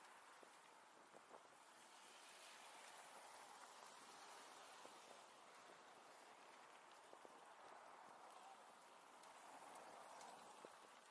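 Bicycle tyres roll over pavement.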